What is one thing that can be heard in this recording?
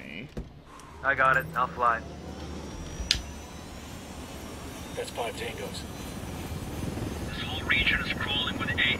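A helicopter's engine and rotor drone steadily close by.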